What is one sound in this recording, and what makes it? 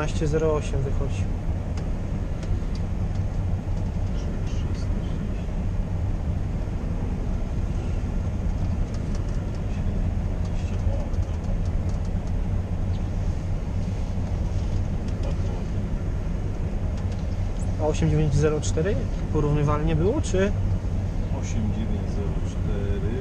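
An engine drones steadily and loudly from inside a machine cab.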